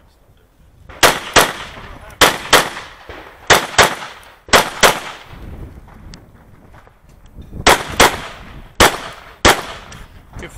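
A handgun fires sharp shots in quick pairs, each ringing out across open ground.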